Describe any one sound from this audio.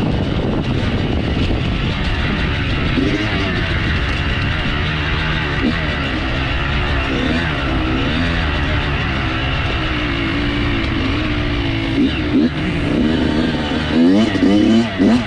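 Wind rushes and buffets outdoors.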